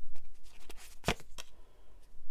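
A card slides and flips on a cloth.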